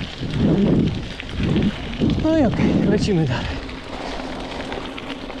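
Mountain bike tyres roll and crunch over a dirt trail.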